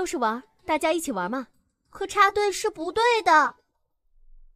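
A young girl speaks clearly, close by.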